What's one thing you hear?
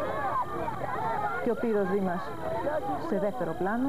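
A woman speaks excitedly close by over the crowd.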